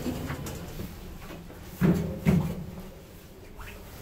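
Elevator doors slide shut with a thud.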